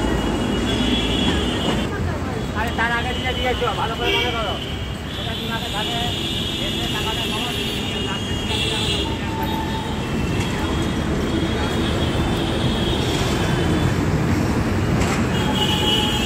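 Traffic rumbles steadily nearby outdoors.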